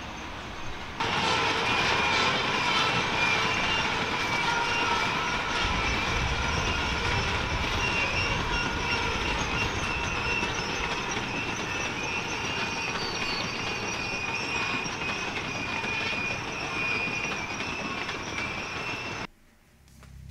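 Train wheels squeal with high, steady tones.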